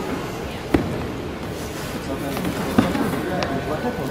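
Cardboard boxes scrape and flap open.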